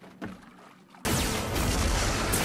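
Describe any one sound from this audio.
Rocks crash and rumble.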